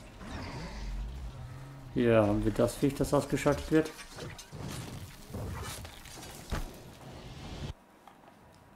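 Metal clanks and crashes in a fierce fight.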